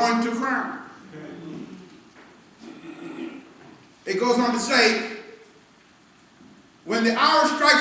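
A man preaches with animation through a microphone, heard over loudspeakers.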